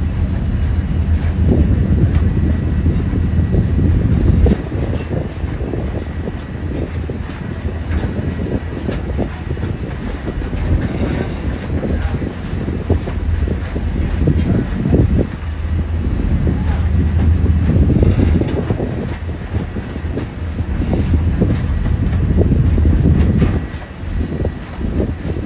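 A boat engine rumbles low and steadily.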